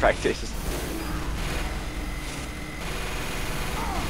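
A heavy rotary gun fires in rapid bursts.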